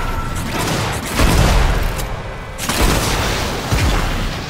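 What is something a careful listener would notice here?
Electric bolts zap and crackle.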